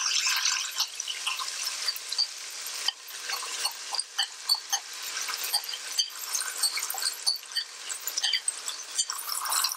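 A spoon scrapes against a bowl.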